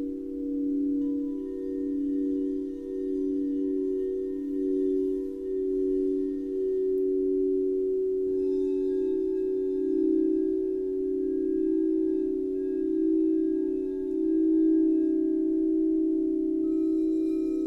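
A mallet strikes a crystal bowl with a soft knock.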